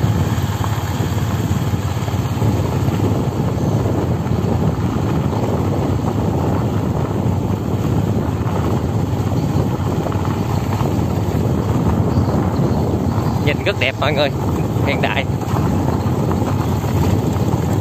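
Wind blows steadily and roars across an open outdoor space.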